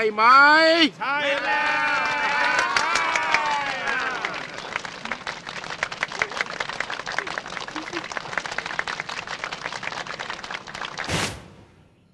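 Many hands clap quickly.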